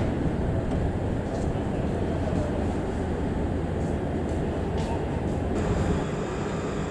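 A train rolls along the tracks with a low rumble.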